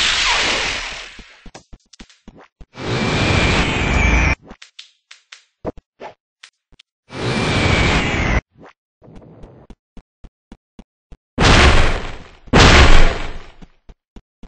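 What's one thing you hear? Loud explosions boom again and again.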